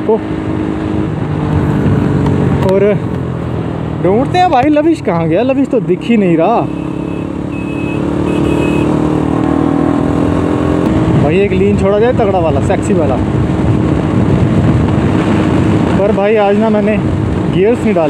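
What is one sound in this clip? A motorcycle engine hums steadily and revs up and down.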